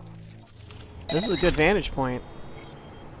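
A sharp electronic whoosh sweeps up and down.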